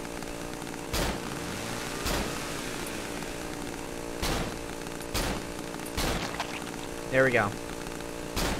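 Gunshots ring out loudly, one at a time.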